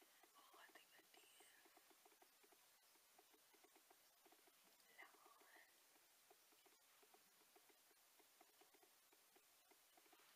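A makeup brush brushes softly against skin.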